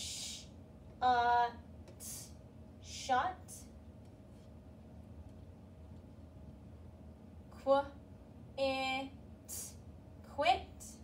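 A young woman speaks clearly and slowly nearby, sounding out words.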